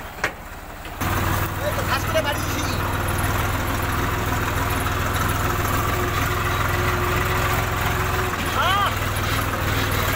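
A tractor engine roars up close.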